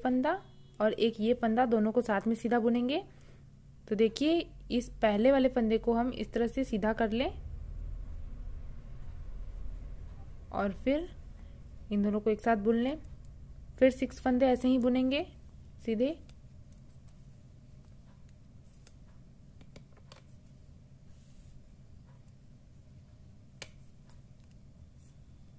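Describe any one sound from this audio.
Knitting needles click and tap softly against each other.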